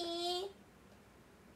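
A young woman lets out a short, high-pitched vocal sound close by.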